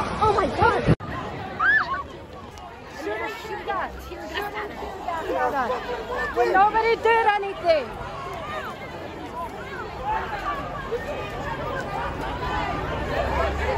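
A large crowd of men and women shouts and chants outdoors.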